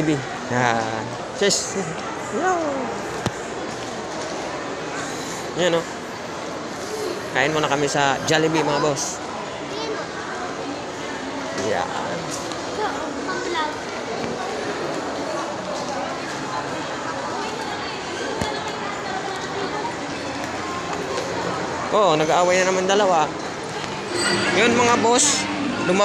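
A young girl talks and babbles nearby.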